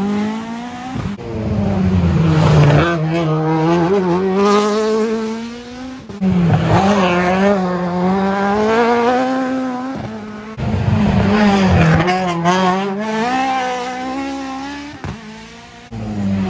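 A rally car engine revs hard through a bend as the cars race past one after another.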